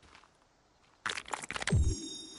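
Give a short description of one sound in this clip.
An axe swings through leaves and brush.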